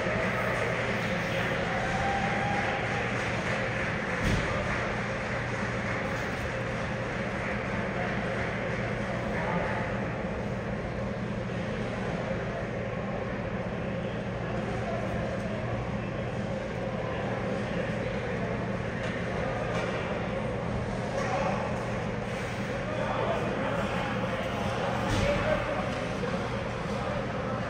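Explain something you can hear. A crowd of people chatters in a large echoing arena.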